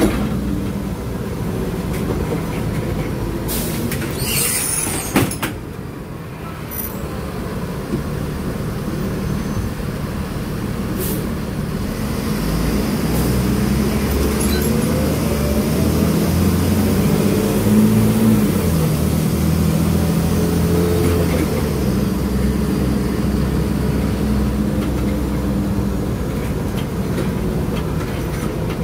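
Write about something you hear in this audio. A bus engine hums and rumbles steadily from inside the bus, rising as the bus speeds up.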